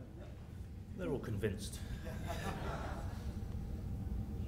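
An older man speaks briefly at a microphone.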